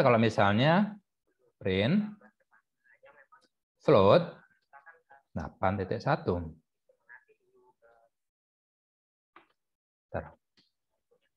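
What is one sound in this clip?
A man speaks calmly into a close microphone, in short phrases with pauses.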